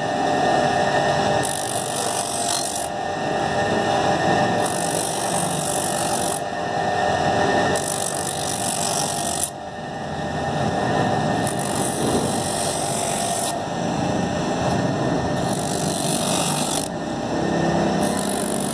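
A bench grinder hums steadily.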